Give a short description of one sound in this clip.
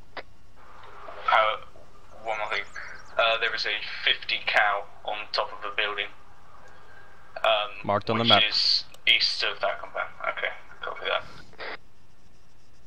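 A man talks with animation into a headset microphone, heard close up.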